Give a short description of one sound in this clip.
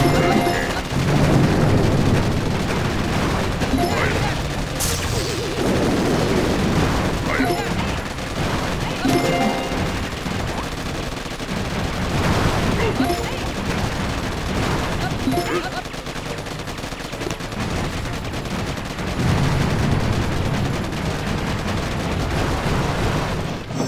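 Gunfire and explosions crackle and boom.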